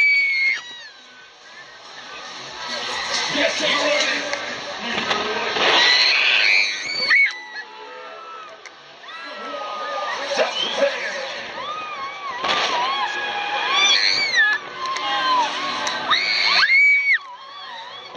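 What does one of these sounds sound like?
Young women and girls scream and shriek on a fast ride.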